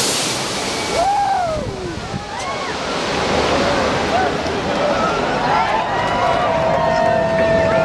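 A jet airliner's engines rumble on the runway after landing.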